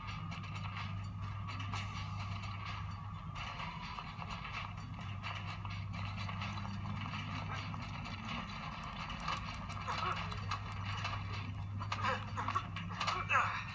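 Game sounds of a fight play from a small handheld speaker.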